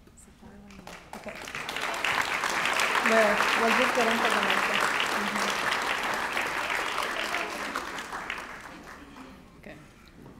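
An audience applauds loudly in a large hall, then the clapping fades.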